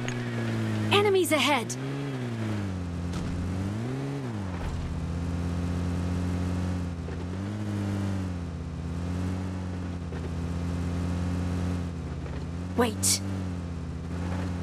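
An off-road vehicle's engine drones, rising and falling in pitch.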